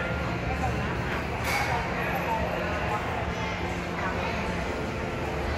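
Many voices murmur and chatter in a busy indoor hall.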